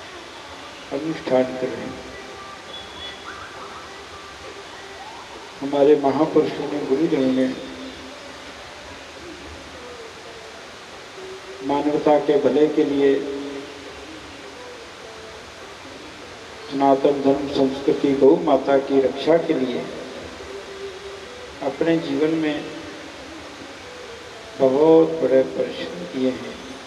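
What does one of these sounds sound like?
An elderly man speaks calmly into a microphone, in slow phrases with pauses.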